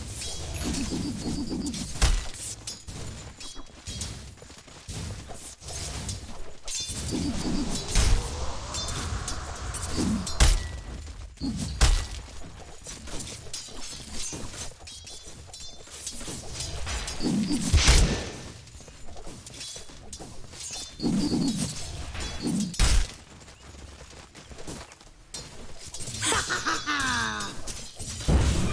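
Weapons and spells clash with sharp bursts and thuds during a fantasy battle.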